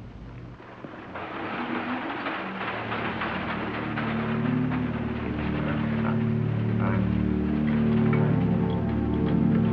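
A cart rattles as it rolls along a hard floor.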